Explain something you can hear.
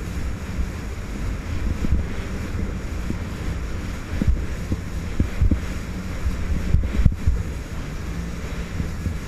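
A jet ski engine drones steadily up close.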